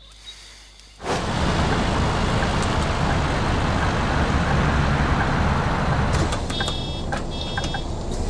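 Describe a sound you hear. A bus engine rumbles steadily while driving.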